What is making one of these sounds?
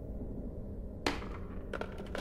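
A telephone handset clacks down onto its cradle.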